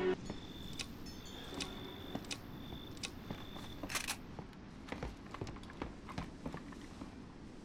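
Footsteps thud steadily across creaking wooden boards.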